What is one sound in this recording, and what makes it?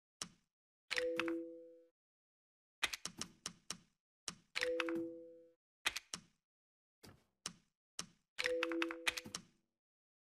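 A short two-note chime rings several times.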